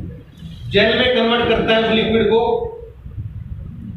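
A man speaks loudly through a microphone and loudspeaker.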